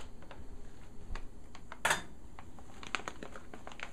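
Dry food pours from a pouch into a pot.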